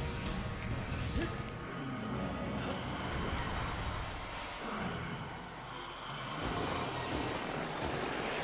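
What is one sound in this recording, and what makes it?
Video game sound effects whoosh and clash.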